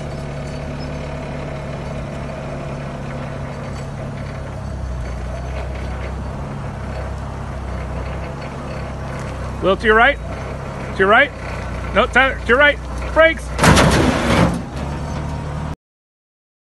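A forklift engine rumbles steadily close by.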